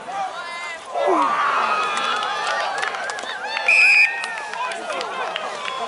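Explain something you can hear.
Spectators cheer and shout from the sideline.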